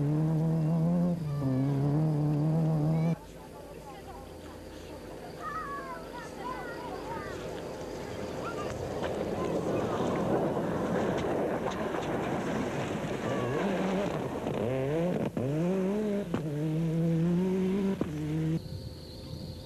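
A rally car engine roars and revs hard, shifting up and down through the gears.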